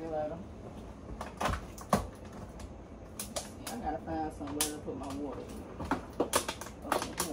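Glass jars and bottles clink and rattle as items are moved around in a refrigerator.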